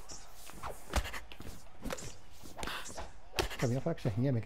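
Punches land with heavy, sharp thuds.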